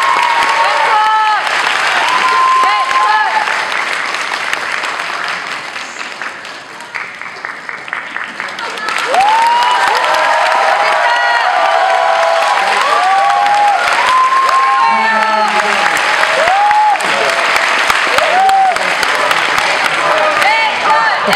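A crowd of young women screams and cheers loudly in a large echoing hall.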